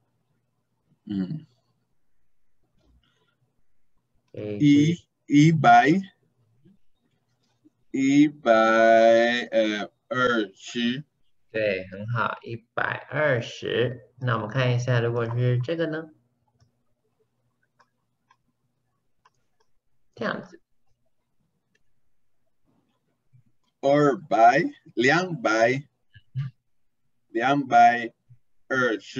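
A man speaks calmly over an online call, explaining at a steady pace with pauses.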